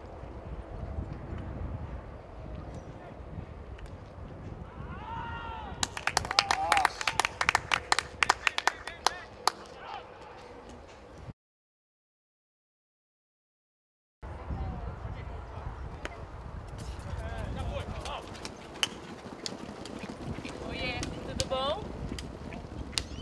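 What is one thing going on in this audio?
Horses' hooves thud on grass as they gallop.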